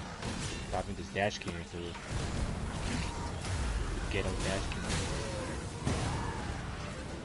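Magic blasts crackle and boom in a loud fight.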